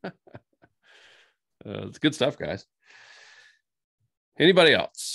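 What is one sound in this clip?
Men laugh over an online call.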